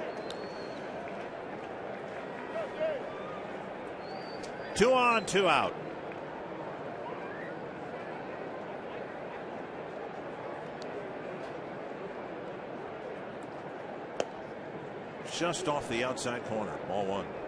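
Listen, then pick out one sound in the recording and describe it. A large stadium crowd murmurs.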